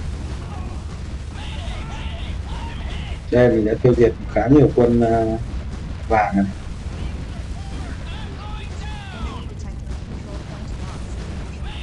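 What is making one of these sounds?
Explosions boom in short bursts.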